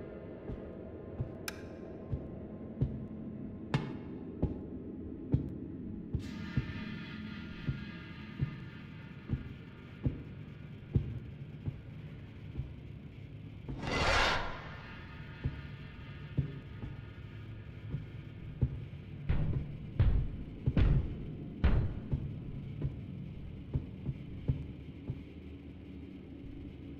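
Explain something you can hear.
Footsteps thud on metal floors at a steady walking pace.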